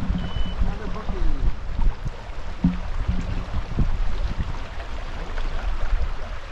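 A shallow stream ripples and burbles over stones.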